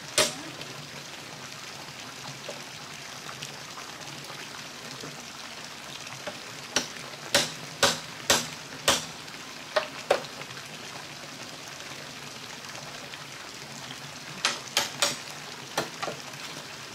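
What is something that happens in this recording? Wooden poles knock and clatter against each other.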